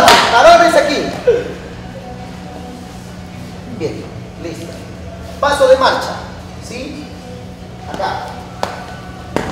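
A man calls out loud instructions to a group.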